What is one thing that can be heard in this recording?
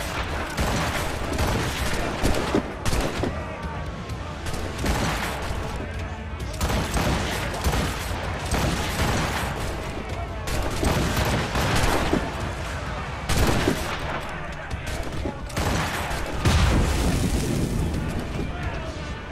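A swivel gun fires repeated booming shots.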